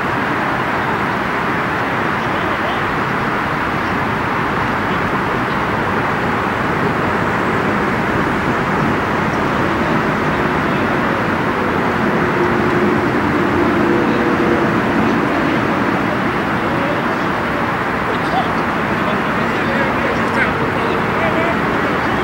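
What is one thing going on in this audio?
Outdoors in steady wind, a loud rushing roar fills the air.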